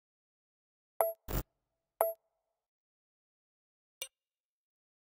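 Short message alert blips sound from a game chat.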